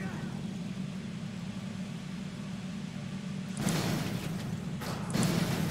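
An armoured vehicle's engine rumbles steadily.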